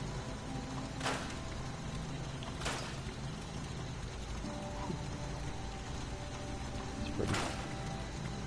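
A menu selection clicks several times.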